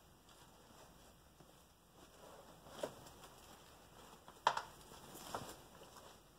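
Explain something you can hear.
A fabric bag rustles and crinkles.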